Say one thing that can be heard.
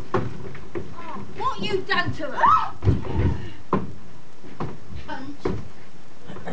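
A woman sings with a rising and falling voice.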